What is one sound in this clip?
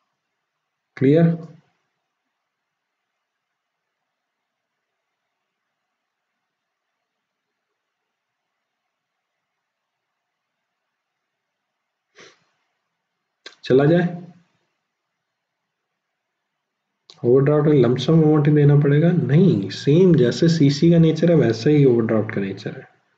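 A man speaks calmly and close to a microphone, in short bursts between long pauses.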